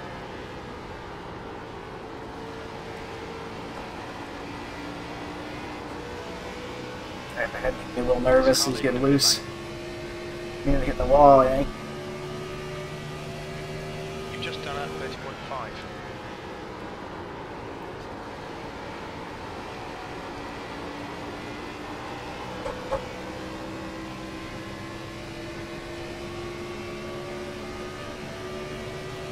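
A race car engine drones steadily at high speed.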